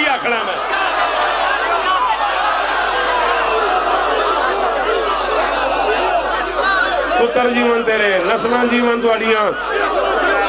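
A large crowd of men chant loudly together.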